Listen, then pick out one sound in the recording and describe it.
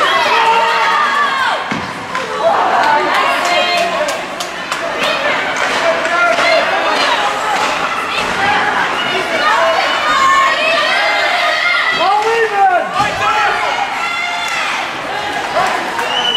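A crowd of spectators chatters and calls out in a large echoing rink.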